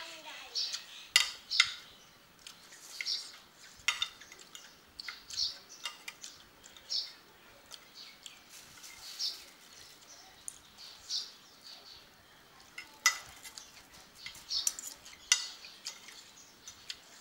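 A woman slurps and chews food loudly, close by.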